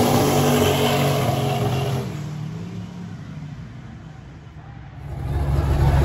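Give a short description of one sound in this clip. Race cars roar past at full speed and fade into the distance.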